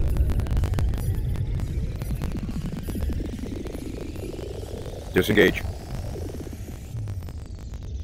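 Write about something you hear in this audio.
A spaceship's jump drive whooshes and rises in pitch.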